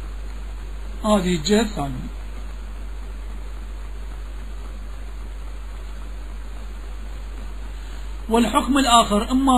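A man speaks slowly and deliberately, with long pauses.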